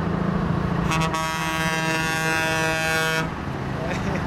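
A truck horn blares loudly for a couple of seconds.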